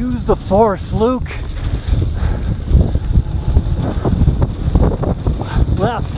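Wind rushes and buffets loudly past a rider moving fast downhill.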